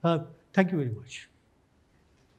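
An elderly man speaks through a microphone in a large hall.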